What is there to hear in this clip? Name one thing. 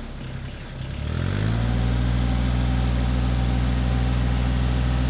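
A tractor engine revs up and roars louder.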